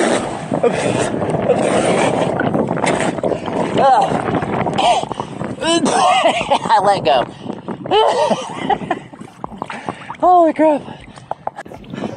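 Water laps and splashes around a man swimming.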